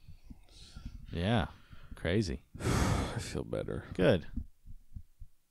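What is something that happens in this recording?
A young man speaks into a close microphone with animation.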